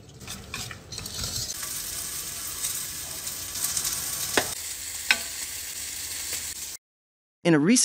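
Batter sizzles in a hot pan.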